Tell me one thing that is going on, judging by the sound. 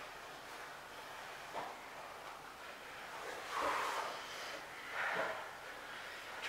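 Bodies thump and slide on a padded mat.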